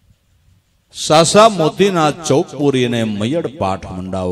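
An elderly man sings loudly through a microphone.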